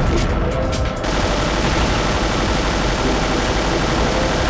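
A submachine gun fires rapid bursts.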